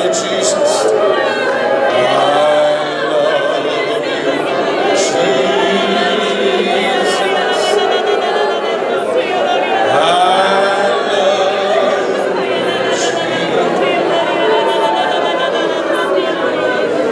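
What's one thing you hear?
A man preaches loudly into a microphone.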